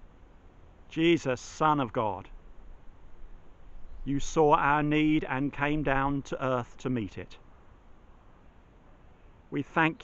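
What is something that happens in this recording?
A middle-aged man speaks calmly and close up, in pauses.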